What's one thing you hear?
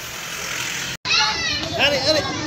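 Young children chatter excitedly close by.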